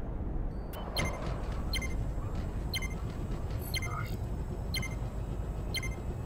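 A countdown timer beeps about once a second.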